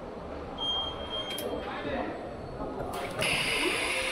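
A robotic machine whirs as it moves into place.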